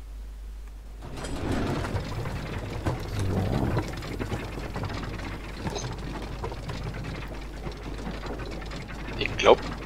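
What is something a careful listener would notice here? A heavy lift rumbles steadily as it moves down.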